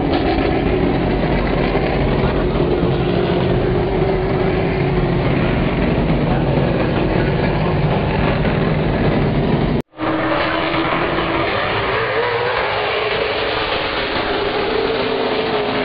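Race car engines roar as cars circle a track.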